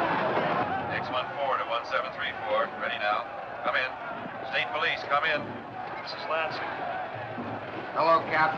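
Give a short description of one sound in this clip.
A man speaks through a loudspeaker.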